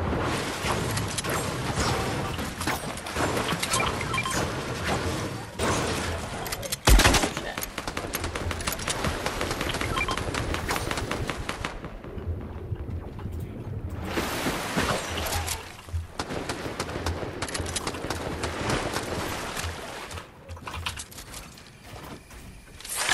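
Gunshots and building clatter come in quick bursts from a video game.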